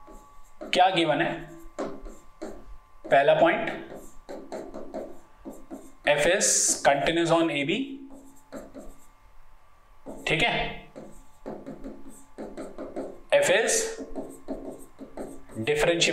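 A pen taps and scratches on a board.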